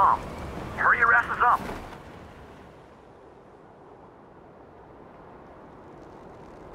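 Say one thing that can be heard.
Wind rushes steadily past a gliding parachute.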